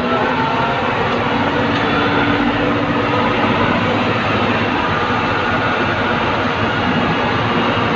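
Garbage slides and clatters out of a tipping bin.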